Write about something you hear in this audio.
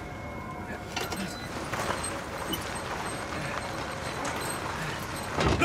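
A heavy wooden crate on wheels rumbles and scrapes as it is pushed across a floor.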